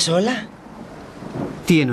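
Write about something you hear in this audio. A man speaks up close, sounding upset.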